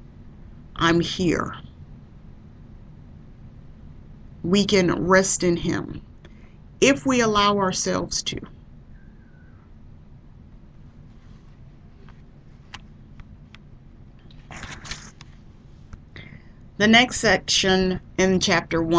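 A woman speaks calmly into a microphone, in short bursts with pauses.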